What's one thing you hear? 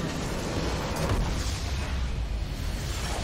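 A building in a video game explodes with a loud, rumbling crash.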